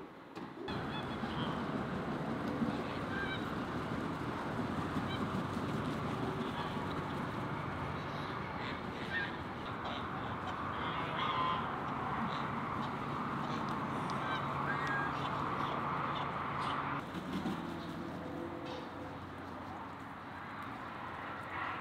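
Domestic ducks quack outdoors.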